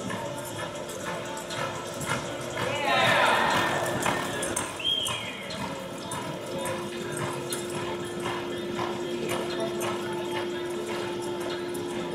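Horse hooves thud on soft dirt in a steady rhythm.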